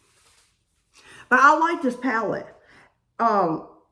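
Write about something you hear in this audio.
A middle-aged woman speaks loudly and with animation, close to a microphone.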